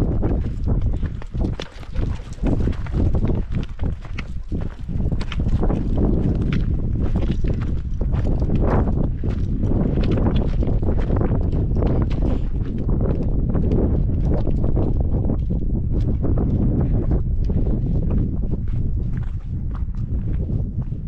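Footsteps crunch on loose stones and gravel.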